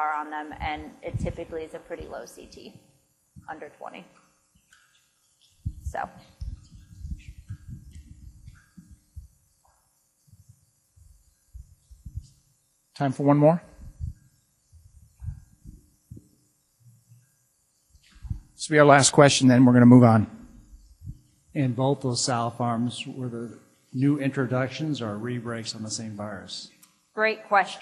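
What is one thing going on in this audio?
A young woman speaks calmly through a microphone, pausing often.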